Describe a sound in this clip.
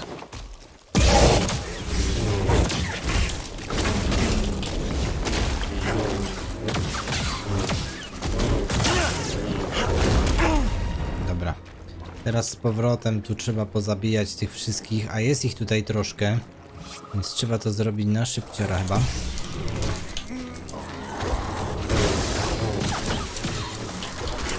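Laser swords hum and clash in a fight.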